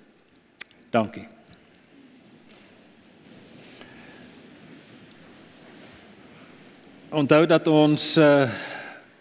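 An older man speaks calmly into a microphone in a reverberant room.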